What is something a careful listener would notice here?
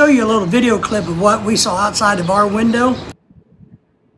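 A middle-aged man speaks with animation close to the microphone.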